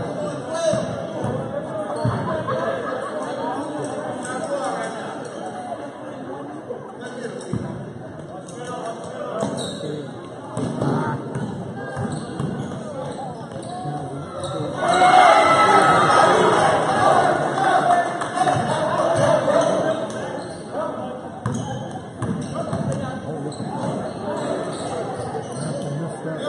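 Basketball shoes squeak on the court floor.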